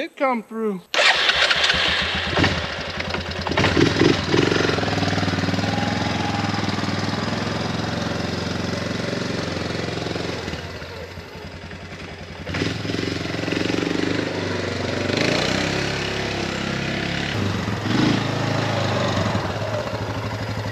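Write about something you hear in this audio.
A quad bike engine idles and revs, driving off and coming back.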